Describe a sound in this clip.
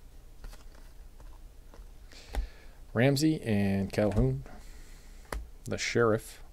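Trading cards rustle and flick softly as they are sorted by hand.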